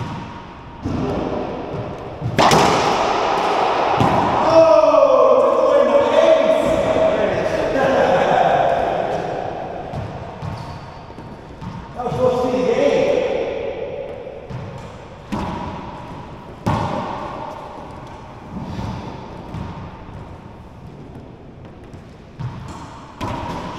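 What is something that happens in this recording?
A racquetball smacks sharply off the walls in an echoing court.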